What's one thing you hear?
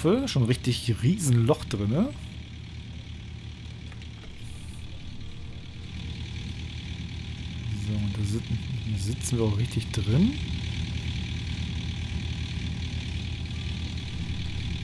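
An excavator engine drones steadily.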